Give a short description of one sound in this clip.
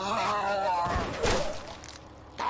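A heavy blow strikes with a thud.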